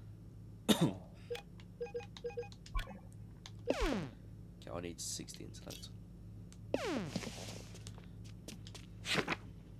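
Quick whooshing menu sound effects sweep downward.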